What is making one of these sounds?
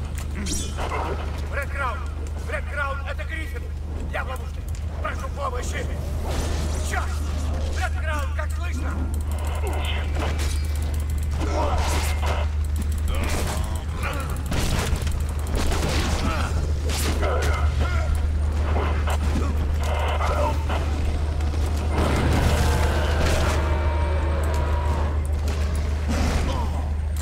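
Blows and slashes strike hard, again and again.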